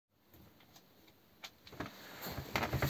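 Dishes clink and knock in a metal sink.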